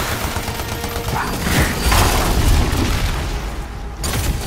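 An electric blast crackles and roars.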